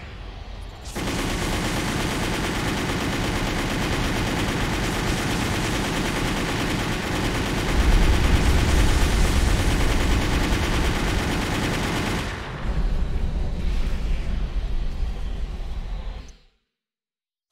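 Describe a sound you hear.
Guns fire with loud bursts and explosions.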